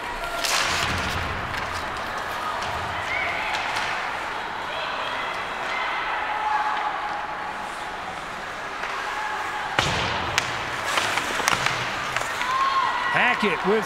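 A crowd of spectators murmurs and cheers in an echoing rink.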